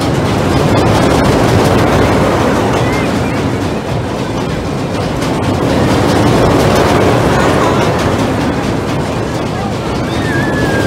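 A pendulum ride swings overhead with a loud rushing roar.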